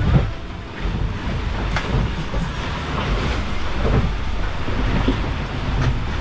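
Water rushes and slaps against the hull of a small boat at sea.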